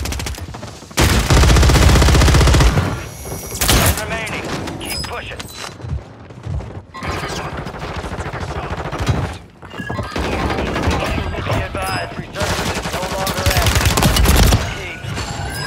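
Rapid gunfire bursts out loud and close, in short volleys.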